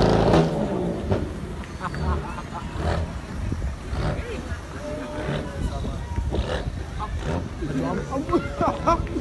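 A man talks and shouts nearby outdoors.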